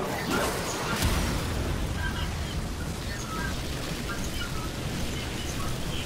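Energy blasts burst with loud booms.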